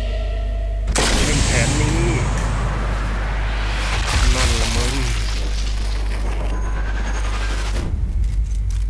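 A bullet whooshes through the air in slow motion.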